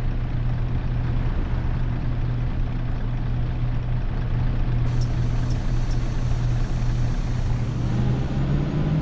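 A bus engine idles with a steady low hum.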